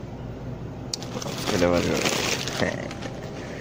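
A snack bag crinkles in a hand.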